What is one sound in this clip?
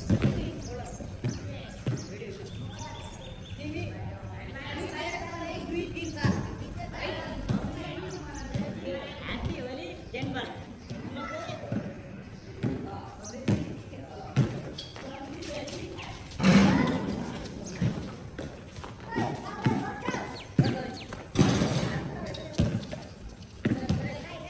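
Young men shout and call out during a game.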